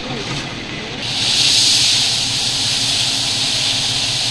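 Gravel pours out of a dump truck with a steady rushing hiss.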